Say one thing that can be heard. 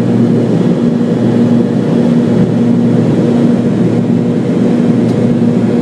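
A jet engine roars steadily with a low hum inside an airplane cabin.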